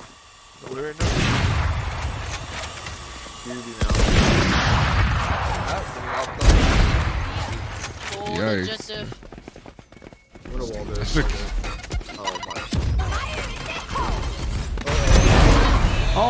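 A game's effects whoosh and roar loudly.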